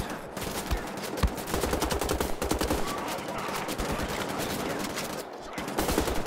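A heavy automatic gun fires rapid bursts of loud shots.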